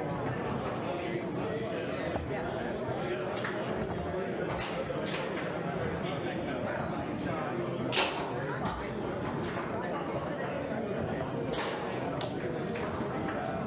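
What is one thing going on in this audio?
A foosball ball cracks against the rod figures and walls of the table.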